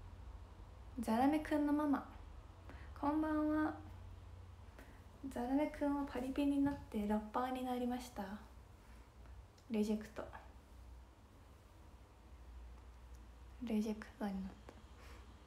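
A young woman talks close to a microphone, lively and light.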